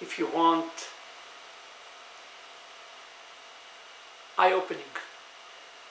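A middle-aged man speaks calmly and close by in short bursts.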